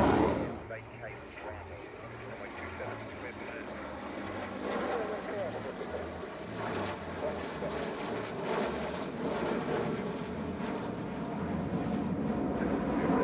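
Several jets rumble faintly in the distance as they fly in formation.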